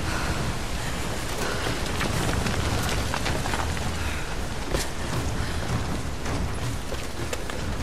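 Footsteps crunch on rock and dirt.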